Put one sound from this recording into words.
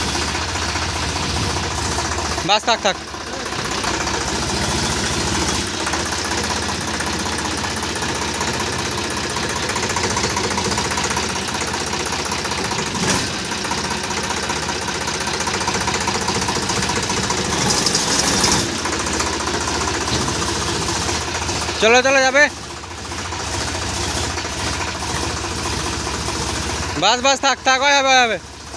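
A tractor engine idles with a steady, rumbling chug.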